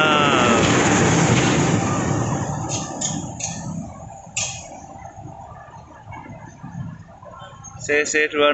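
A diesel locomotive rumbles loudly close by, then fades as it pulls away.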